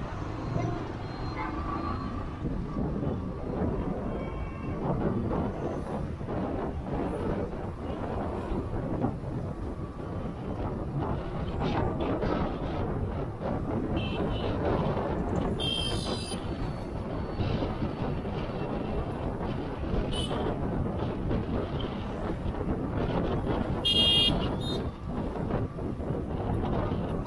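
Wind rumbles and buffets steadily against a moving vehicle.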